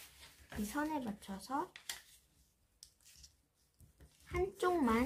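Paper crinkles softly as it is folded.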